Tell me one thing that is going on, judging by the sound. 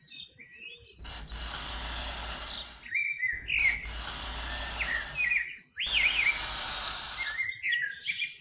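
A thin stick scratches a line through sand.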